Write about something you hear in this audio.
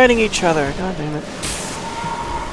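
Flames burst with a whoosh.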